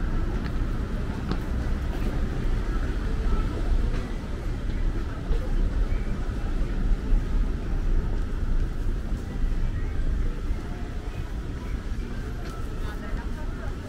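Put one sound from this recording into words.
Footsteps tap steadily on pavement close by.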